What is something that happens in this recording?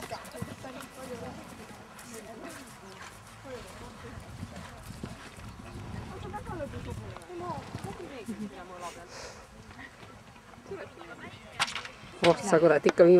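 A horse canters over grass with soft, rhythmic hoofbeats.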